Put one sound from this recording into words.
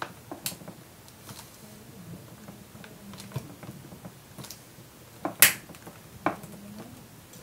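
Hands press and click plastic parts on a laptop.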